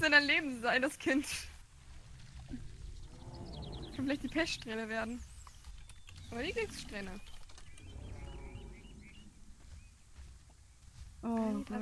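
A large reptile lets out shrill, warbling calls in short bursts.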